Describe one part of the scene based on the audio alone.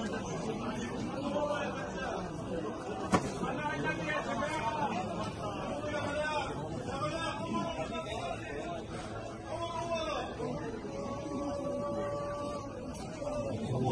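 A large crowd of men chants and murmurs together outdoors.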